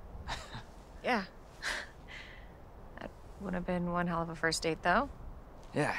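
A young woman speaks gently.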